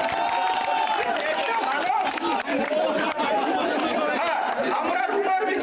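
A man speaks loudly with animation to a crowd outdoors.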